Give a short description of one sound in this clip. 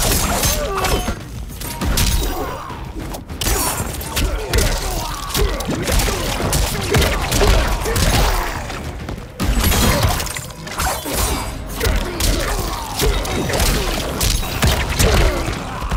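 Heavy punches and kicks land with loud thuds and cracks.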